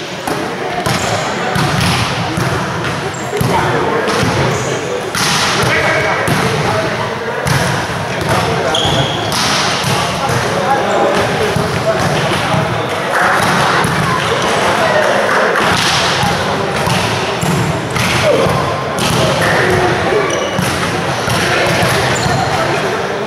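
A crowd of spectators murmurs and cheers in a large echoing hall.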